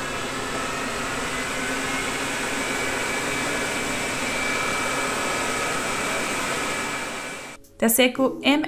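A robot vacuum cleaner hums steadily as it moves.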